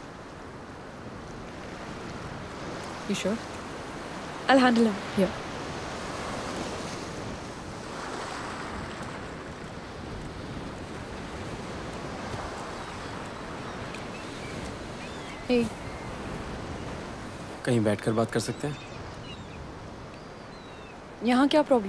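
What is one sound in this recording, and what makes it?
Waves wash steadily onto a beach.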